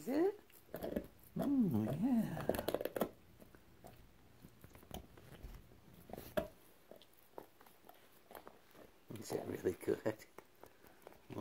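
A dog chews and gnaws on a soft toy.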